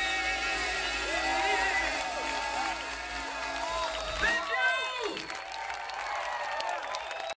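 A man sings loudly through a microphone over a live band.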